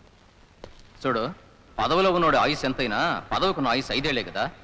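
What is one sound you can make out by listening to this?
A man shouts loudly in an echoing space.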